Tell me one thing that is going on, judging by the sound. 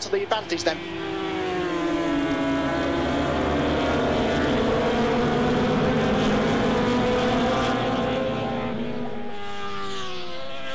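Motorcycle engines whine and shift pitch as riders accelerate.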